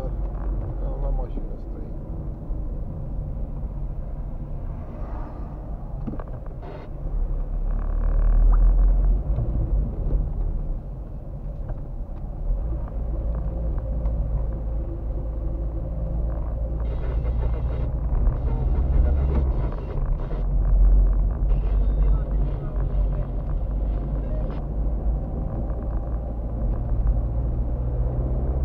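A car engine hums steadily, heard from inside the cabin.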